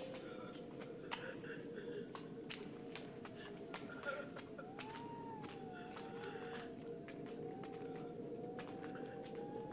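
Footsteps shuffle slowly away down a stone corridor.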